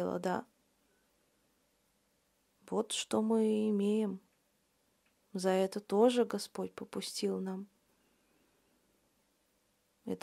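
A woman speaks calmly and close to the microphone, in short phrases with pauses.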